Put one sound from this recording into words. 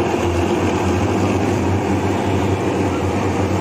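A fogging machine hisses loudly, spraying mist.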